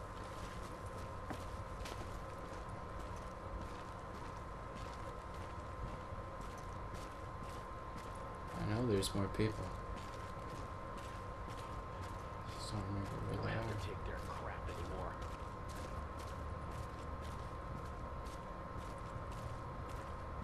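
Footsteps crunch on snow at a steady walking pace.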